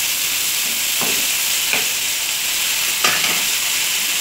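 A spoon scrapes against a pan.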